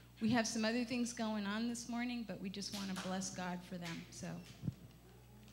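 A woman sings loudly through a loudspeaker in a large echoing hall.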